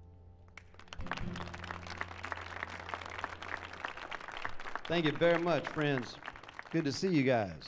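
An acoustic guitar is strummed through a loudspeaker.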